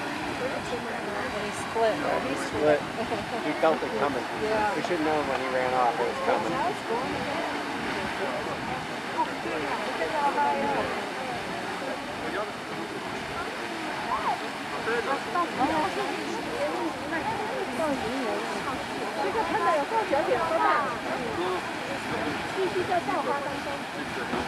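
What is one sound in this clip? A geyser roars and hisses as water and steam gush steadily upward.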